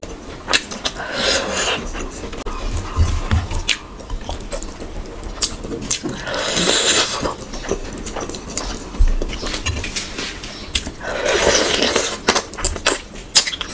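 A young woman slurps juicy food close to a microphone.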